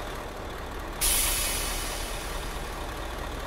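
Air hisses sharply from a bus's brakes and fades.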